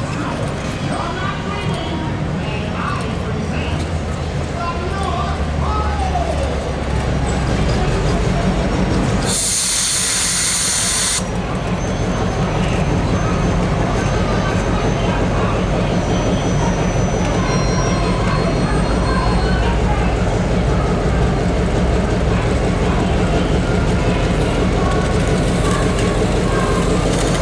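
A diesel locomotive engine rumbles deeply and steadily close by.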